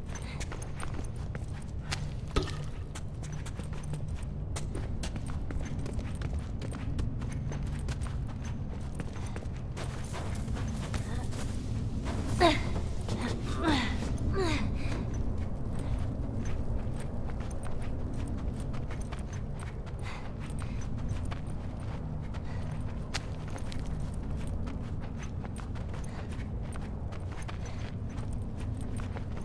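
Footsteps crunch and scuff steadily over debris and snow.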